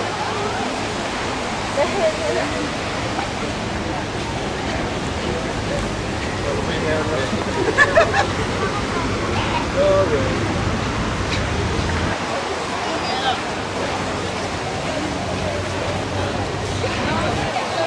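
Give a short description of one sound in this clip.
Young men and women talk and call out nearby.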